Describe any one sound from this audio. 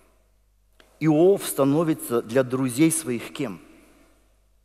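A middle-aged man speaks with animation through a microphone in a reverberant hall.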